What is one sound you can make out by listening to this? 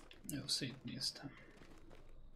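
A young man talks briefly close to a microphone.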